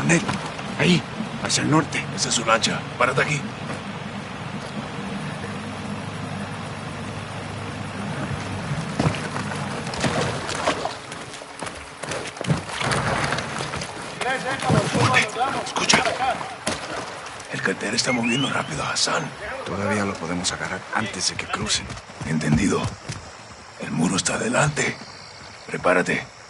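A man speaks in a low, urgent voice close by.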